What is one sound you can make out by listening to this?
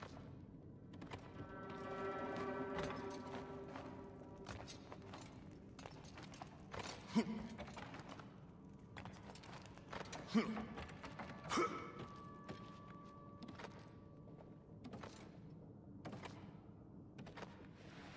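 Footsteps clank on ladder rungs and thud on wooden planks.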